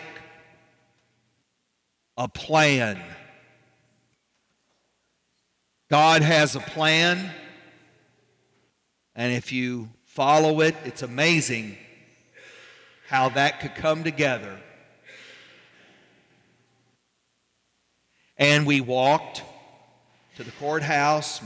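A man speaks slowly through a microphone in a large echoing hall, with pauses between phrases.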